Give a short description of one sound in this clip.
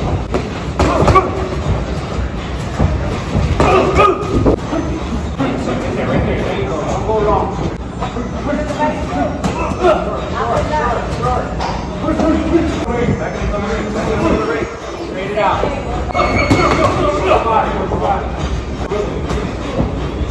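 Boxing gloves thud against each other in quick punches.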